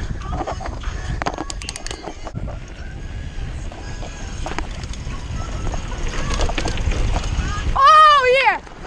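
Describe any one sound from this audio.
Bicycle tyres rumble over a bumpy dirt trail.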